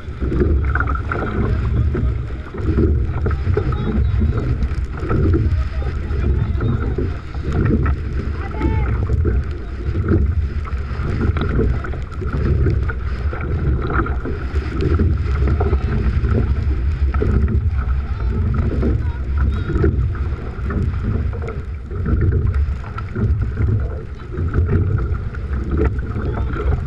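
Water rushes and slaps against a boat's hull.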